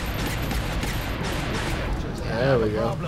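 Laser weapons fire in a rapid crackling burst.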